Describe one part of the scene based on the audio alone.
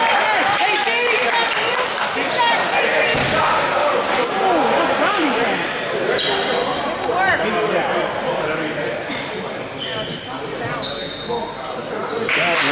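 A crowd of adults chatters in a large echoing gym.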